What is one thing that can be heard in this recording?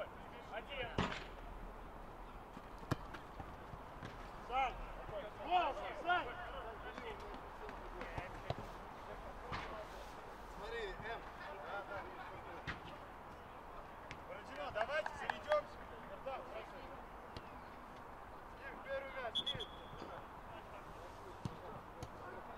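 A ball is kicked with dull thuds outdoors.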